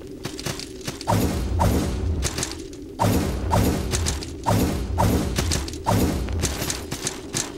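Heavy sword blows strike and thud in quick bursts.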